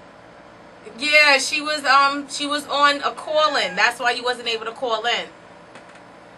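A second man talks into a close microphone.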